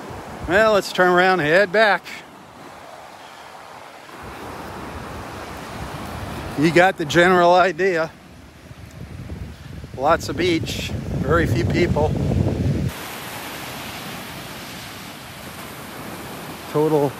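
Small waves break and wash softly onto the shore.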